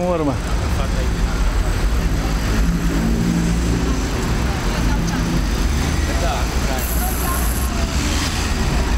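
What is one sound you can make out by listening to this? A large group of bicycles rolls past on a street outdoors.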